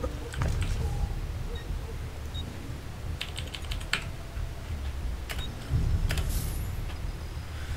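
Short electronic clicks and chimes sound from a game menu.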